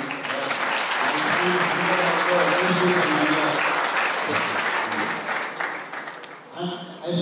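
Hands clap in applause.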